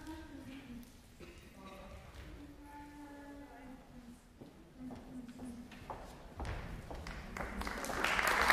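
An audience murmurs quietly in a large echoing hall.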